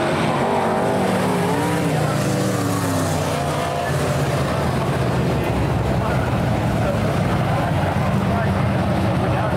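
Race car engines roar loudly, revving up and down.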